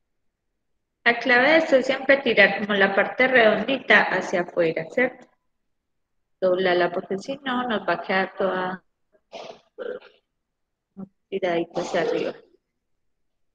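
A young woman speaks calmly and explains, close to the microphone.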